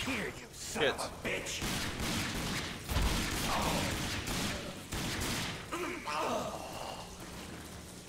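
Gunshots ring out in an echoing space.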